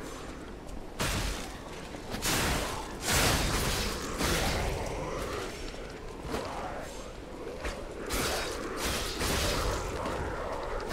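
Swords clash and strike in a fight.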